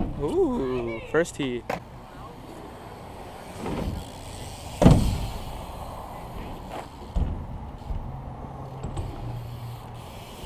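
Bike tyres roll over smooth concrete.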